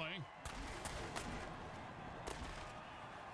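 Armoured players crash together with heavy thuds.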